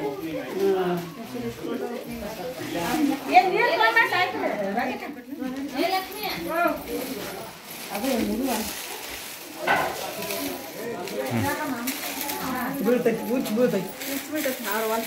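Several women talk and chatter close by.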